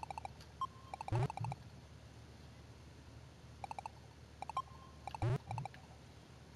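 A falling whistle sound plays as a ball is caught.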